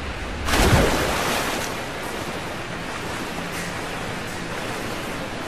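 Water sloshes and ripples as someone swims.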